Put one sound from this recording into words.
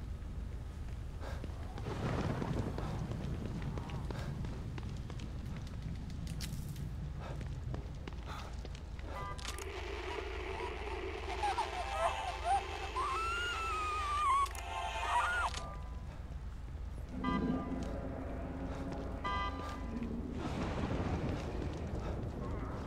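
Footsteps tread on wet pavement.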